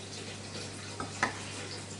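A glass knocks lightly on a table.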